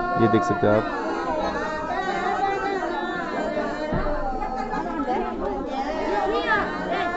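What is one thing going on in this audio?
A group of women sing together close by.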